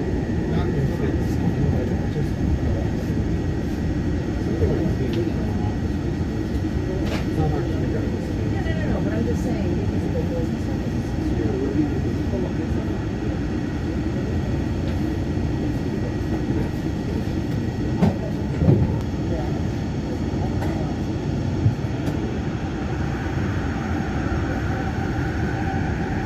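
A train rumbles steadily along its track.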